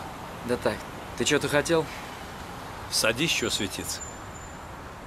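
A middle-aged man speaks through a car window.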